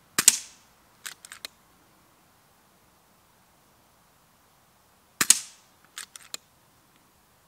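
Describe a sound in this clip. An air rifle's bolt clicks as it is reloaded.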